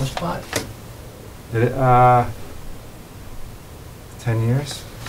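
A man speaks calmly in short phrases nearby.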